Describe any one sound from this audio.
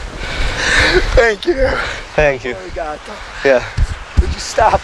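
A young man and a woman laugh and talk close by.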